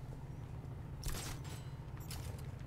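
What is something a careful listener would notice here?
A grappling hook fires with a sharp whoosh.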